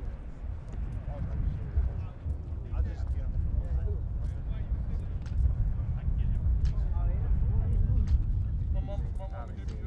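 Several men talk in the distance.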